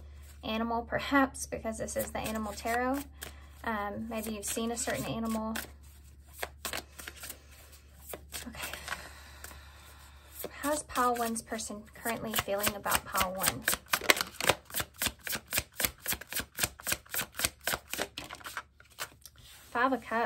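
Playing cards are shuffled with quick, rapid flicks.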